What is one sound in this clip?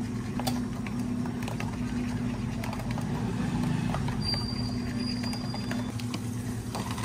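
A metal spoon clinks against a cup.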